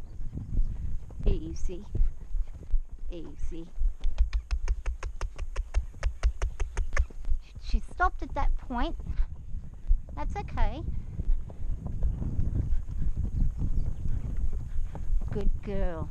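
A horse's hooves thud steadily on dirt.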